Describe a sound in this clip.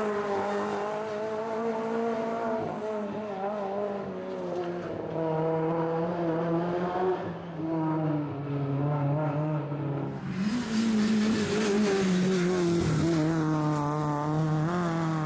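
A rally car engine revs hard and roars, rising and falling in pitch.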